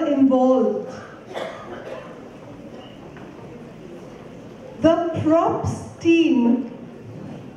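A group of performers sings loudly in a large echoing hall.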